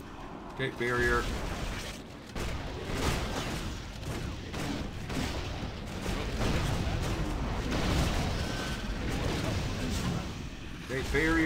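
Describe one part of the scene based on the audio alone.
Magic spells crackle and blast in a fight.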